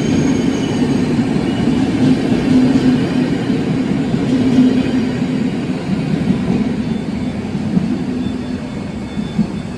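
A train rolls past with a deep rumble and clatter of wheels on rails.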